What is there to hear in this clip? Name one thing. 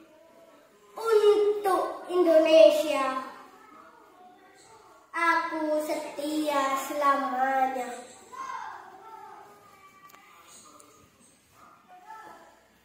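A young boy recites loudly and with feeling, close by.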